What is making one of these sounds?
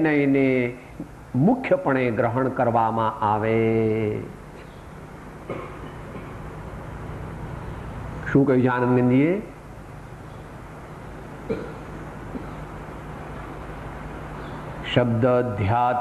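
An elderly man speaks slowly and expressively in bursts, with long pauses.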